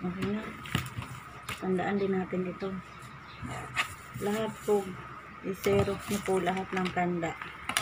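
Stiff paper rustles as it is handled.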